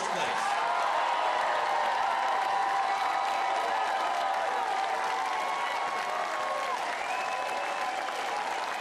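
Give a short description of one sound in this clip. A large crowd cheers and shouts loudly in a big echoing hall.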